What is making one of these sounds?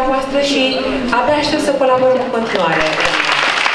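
A woman sings through loudspeakers in a large room.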